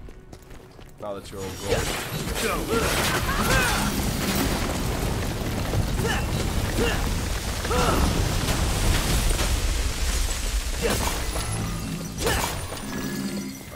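Heavy crashes and explosions boom.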